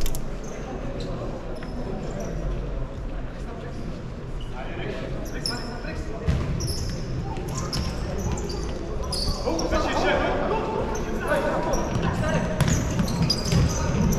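A ball thuds against the floor and walls.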